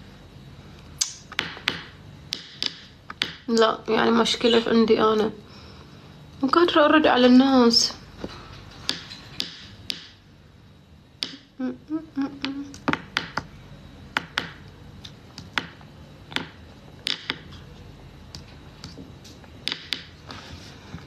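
A pen taps and scratches on paper.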